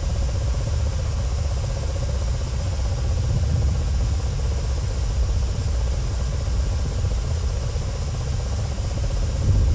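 A helicopter's rotor and engine drone steadily with a low rumble.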